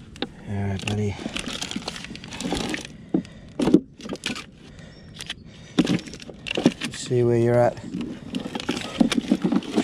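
Plastic packets crinkle and rustle as they are handled.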